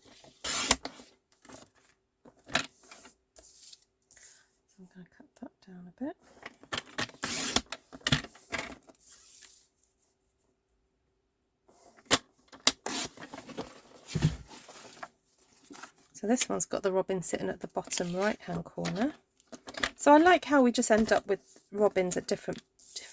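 A paper trimmer blade slides down and cuts through card.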